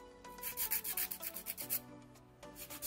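A nail file rasps quickly back and forth against a fingernail.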